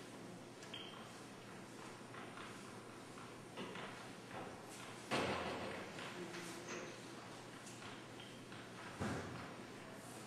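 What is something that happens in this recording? Erasers rub and swish across a board.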